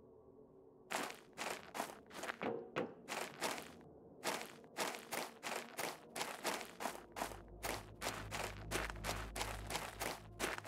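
Footsteps crunch on sand at a quick, steady pace.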